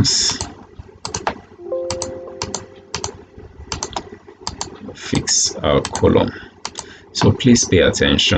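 A computer mouse clicks sharply several times.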